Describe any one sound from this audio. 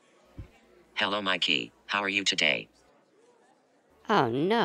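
A boy speaks with animation, close by.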